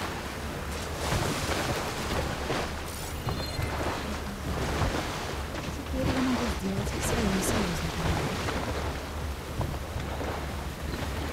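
A boat's engine hums steadily.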